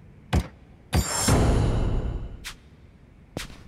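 A bright whooshing chime sounds.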